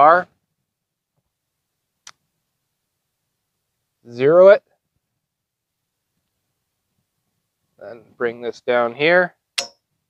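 A small device clicks against a metal bar.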